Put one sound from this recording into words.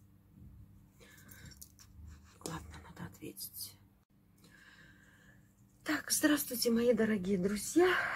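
A woman speaks close by with animation.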